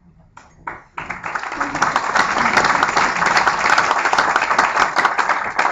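An audience applauds loudly.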